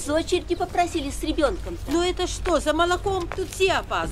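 An elderly woman talks with agitation close by.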